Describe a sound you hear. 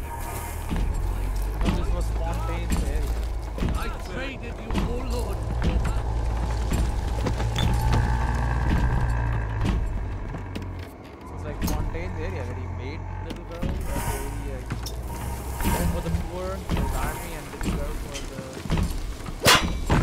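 Footsteps thud on a creaking wooden floor.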